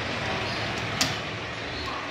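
A lift call button clicks sharply as it is pressed.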